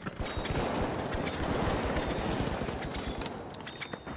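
Glass shatters and tinkles.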